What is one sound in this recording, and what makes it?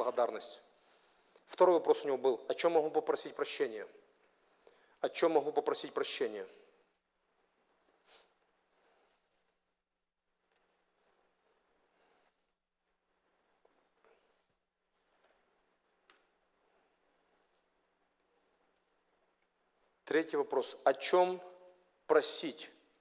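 A middle-aged man speaks calmly into a microphone, pausing at length.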